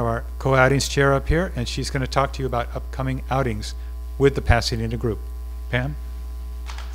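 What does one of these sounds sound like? A man speaks calmly through a microphone and loudspeakers in a large room.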